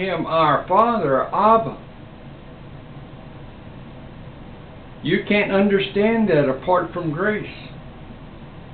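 An elderly man speaks calmly and close by, with pauses.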